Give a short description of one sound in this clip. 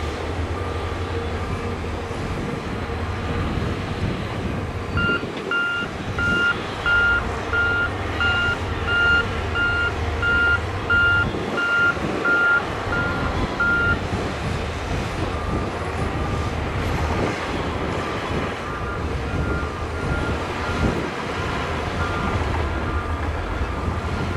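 Heavy diesel engines rumble steadily outdoors.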